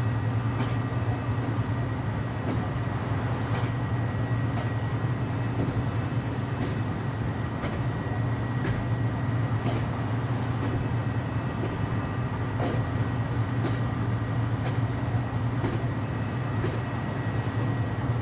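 A train motor hums steadily from inside the cab.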